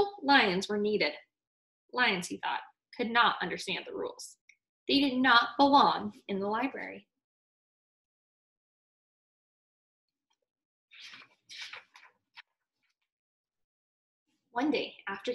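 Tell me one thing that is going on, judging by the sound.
A young woman reads a story aloud close by, with expression.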